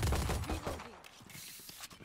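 A pistol clicks and rattles as it is handled.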